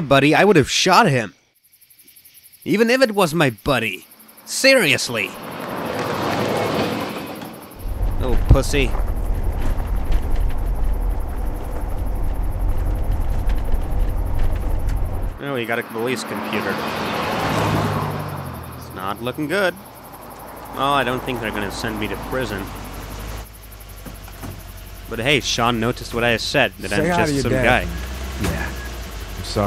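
A man speaks calmly and low.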